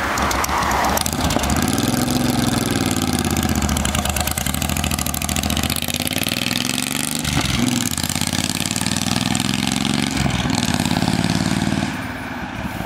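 A V-twin cruiser motorcycle accelerates hard away through the gears and fades into the distance.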